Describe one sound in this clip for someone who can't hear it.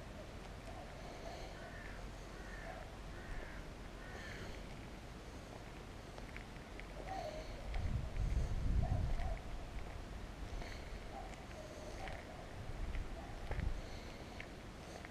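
Wind gusts and rumbles outdoors, swelling now and then.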